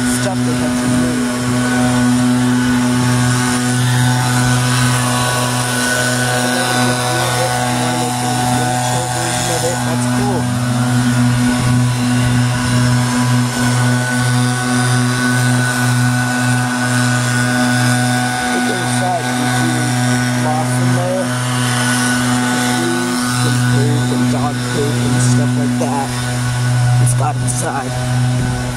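An air conditioning unit hums loudly and steadily close by.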